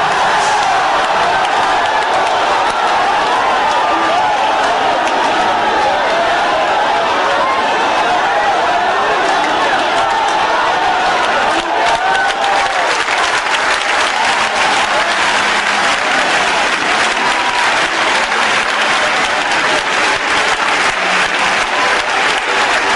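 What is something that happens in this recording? A large crowd sings and cheers loudly in a big echoing hall.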